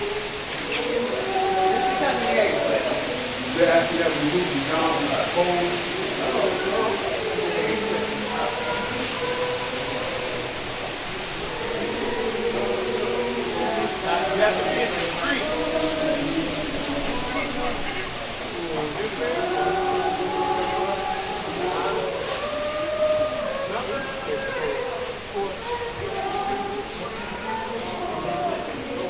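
A crowd of men and women chatter at a distance outdoors.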